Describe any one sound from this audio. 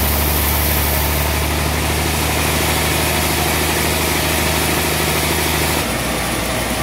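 A large sawmill machine runs with a loud, steady hum.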